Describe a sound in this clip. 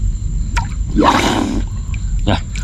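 Water splashes as a person moves through it.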